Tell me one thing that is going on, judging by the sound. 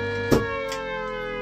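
A switch clicks loudly.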